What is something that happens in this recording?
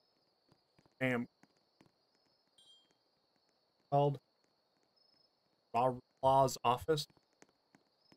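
A man speaks in short bursts into a close microphone, with animation.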